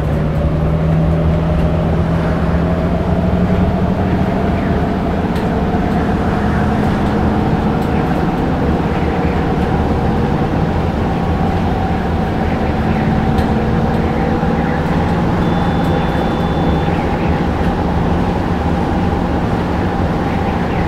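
A city bus transmission whines, rising slowly in pitch.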